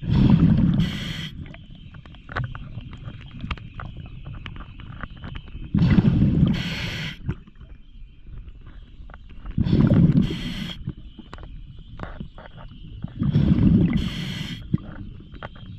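A torch flame roars and hisses in strong bursts.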